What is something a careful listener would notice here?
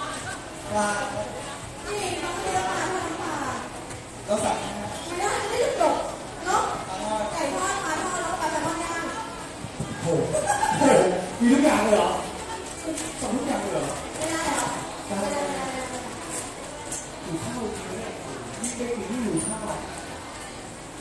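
Young women chatter and squeal excitedly close by.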